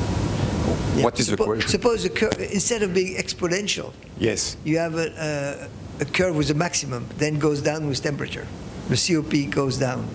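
A man speaks calmly into a microphone, heard over a loudspeaker in a room.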